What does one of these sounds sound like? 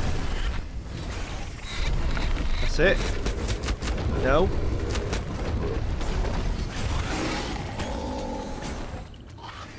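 Magical zaps and whooshes crackle during a fight.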